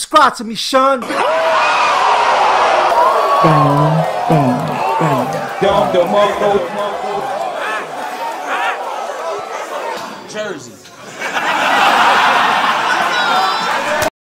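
A large crowd cheers and shouts loudly.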